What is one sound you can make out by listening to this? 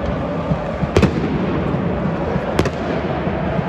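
Flares bang among the crowd.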